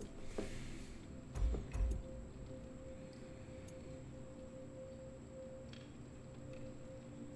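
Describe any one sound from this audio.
A man speaks quietly into a close microphone.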